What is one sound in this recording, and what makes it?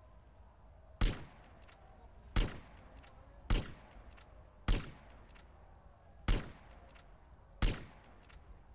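A rifle fires single sharp shots at a steady pace.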